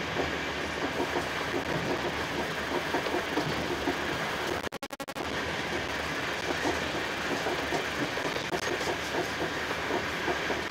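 A train rumbles steadily along the tracks, its wheels clattering in a quick rhythm.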